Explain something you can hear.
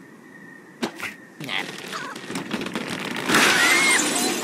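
A slingshot stretches and snaps as it launches a bird.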